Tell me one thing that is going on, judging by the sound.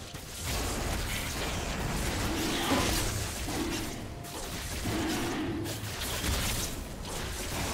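Magic spells whoosh and crackle.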